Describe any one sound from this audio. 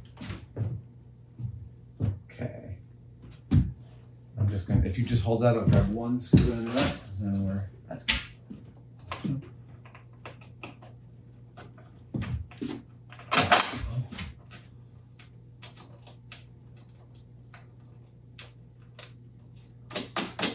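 Metal parts knock and clatter.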